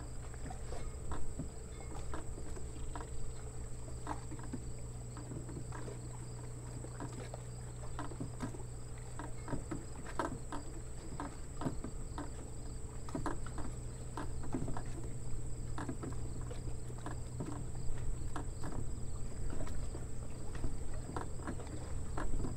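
Small waves lap gently against the shore.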